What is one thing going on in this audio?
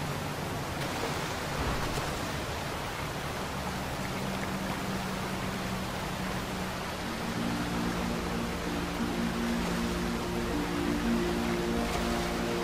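Water rushes and splashes steadily over rocks in a stream.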